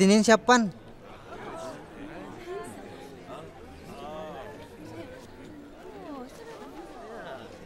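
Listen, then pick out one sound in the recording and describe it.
A crowd of men and women murmur and talk together.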